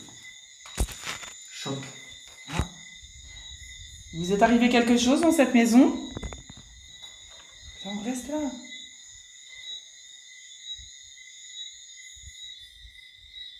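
A phone speaker gives off a steady high electronic whine.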